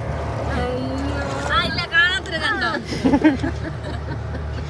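A middle-aged woman laughs loudly close by.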